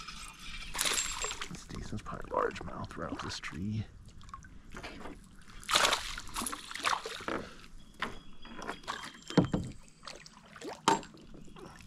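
A fishing reel clicks and whirs as line is wound in.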